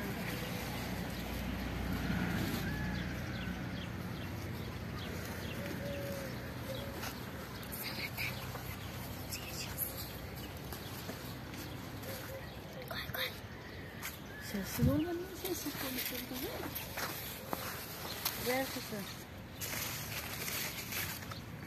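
Leaves rustle as hands push through plants.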